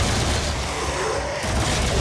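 A fireball whooshes past.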